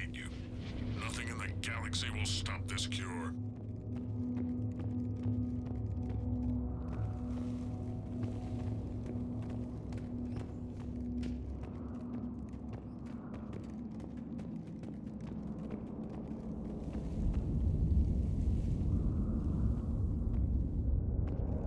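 Heavy armoured footsteps thud on a hard floor.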